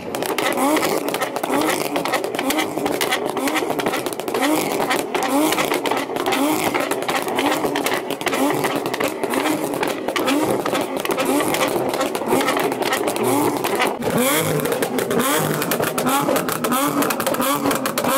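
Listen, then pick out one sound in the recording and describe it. A car's exhaust pops and bangs loudly in rapid bursts.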